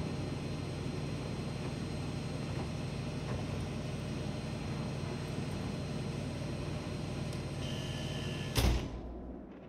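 A heavy metal door rumbles as it slides open.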